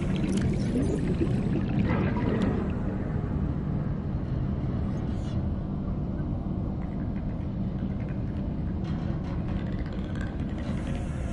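A deep underwater rumble drones steadily.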